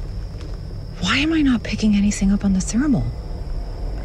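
A young woman speaks quietly and tensely.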